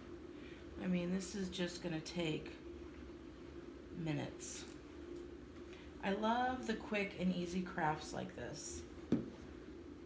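A woman talks calmly close by.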